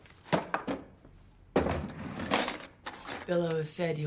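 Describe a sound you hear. Cutlery rattles in a drawer.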